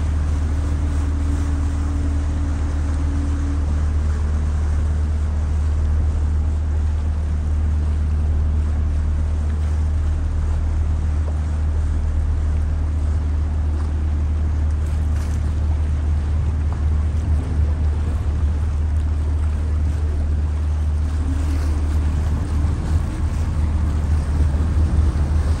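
Water splashes against the hull as the boat moves.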